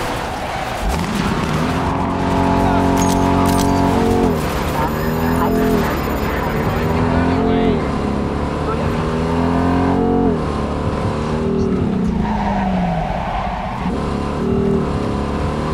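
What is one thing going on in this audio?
A car engine revs hard, rising in pitch and dropping at each gear change.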